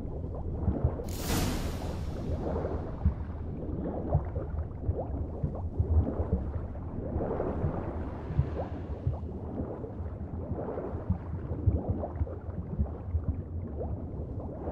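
Water churns and gurgles in muffled bursts as a swimmer strokes underwater.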